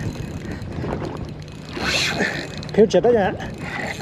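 A fishing reel's handle is cranked with soft clicks.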